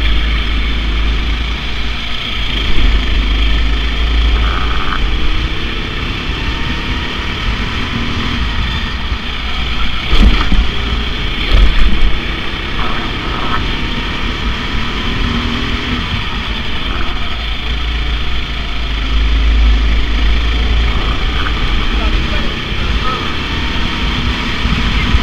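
A go-kart engine drones loudly up close, its pitch rising and falling with the throttle.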